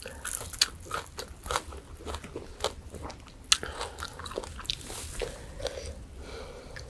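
Crispy fried fish crackles and snaps as fingers tear it apart.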